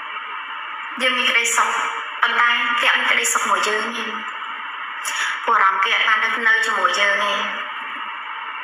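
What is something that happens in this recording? A woman speaks cheerfully and close by, heard through a thin, muffled phone-like recording.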